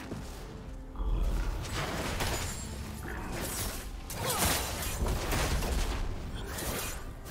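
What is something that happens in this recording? Spell blasts and weapon strikes from a fantasy battle game crash and burst.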